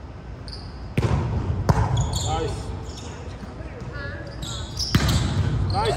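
A volleyball is struck with sharp slaps that echo through a large hall.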